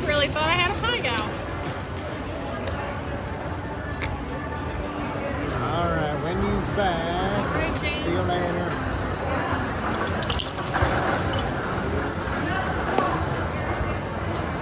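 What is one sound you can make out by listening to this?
Casino chips clack together as they are stacked and moved.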